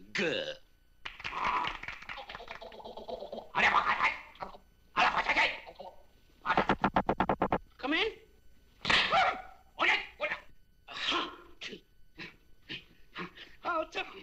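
Several men shout and grunt with animation nearby.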